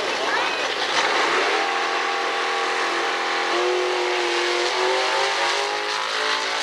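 A race car engine roars and climbs in pitch as the car launches down the track.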